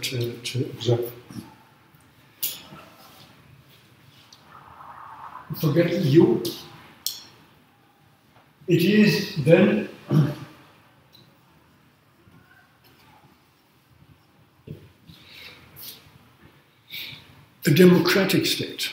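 An elderly man speaks calmly in bursts, close by.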